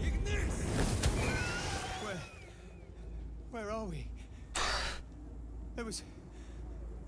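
A young man talks casually into a microphone.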